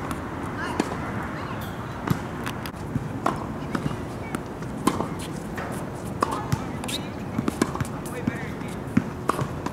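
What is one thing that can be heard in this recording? Tennis balls are struck with rackets, with sharp pops.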